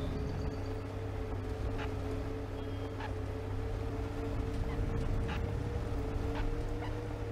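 A bus rattles and creaks over a rough road.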